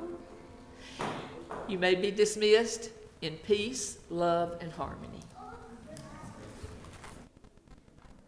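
An elderly woman speaks calmly through a microphone in a large echoing hall.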